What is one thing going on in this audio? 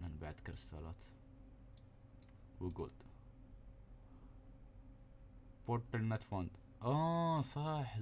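Soft interface clicks sound as menu buttons are pressed.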